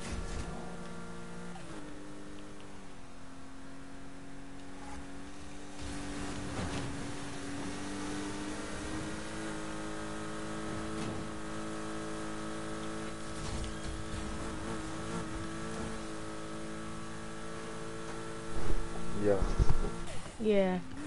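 A sports car engine roars steadily at speed.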